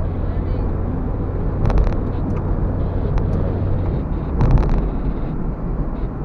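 A car's engine hums steadily from inside the car.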